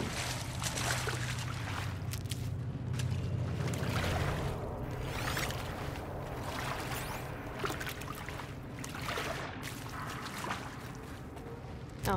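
Water sloshes and bubbles while a character swims.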